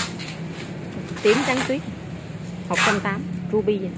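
Leaves rustle under a hand.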